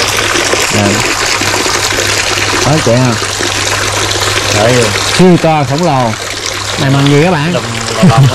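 Water splashes steadily from a pipe into a pool.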